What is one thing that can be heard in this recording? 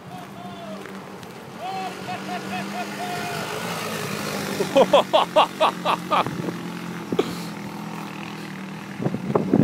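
A small off-road buggy engine drones as it drives past and climbs away up a slope.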